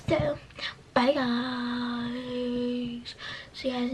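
A young girl lets out a long, drawn-out exclamation.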